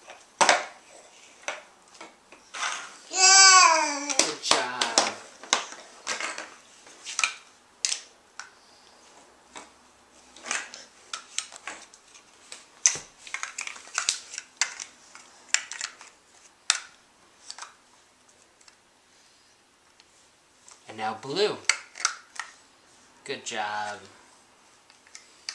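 Plastic toy blocks click and clatter together close by.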